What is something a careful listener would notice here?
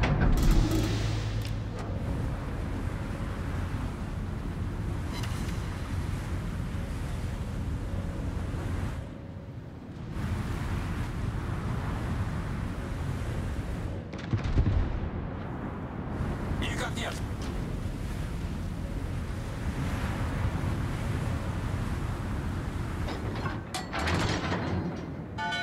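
Water rushes and splashes along a ship's hull.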